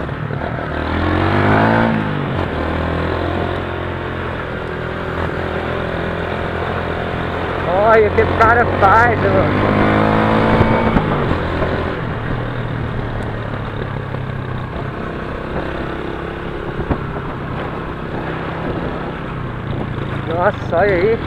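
A motorcycle engine hums steadily, revving up at times.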